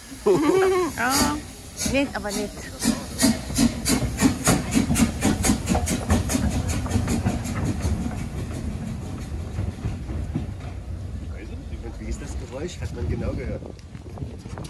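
A steam locomotive chuffs in a fast, steady rhythm as it pulls away.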